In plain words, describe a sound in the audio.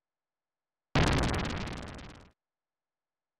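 A burst of game noise plays and fades.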